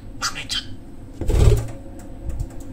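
A budgerigar's wings flap as it flies off.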